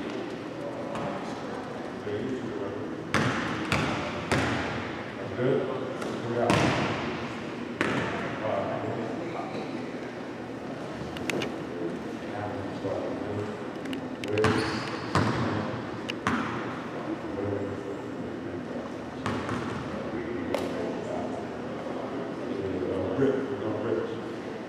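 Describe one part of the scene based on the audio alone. A man talks with players in a large echoing gym.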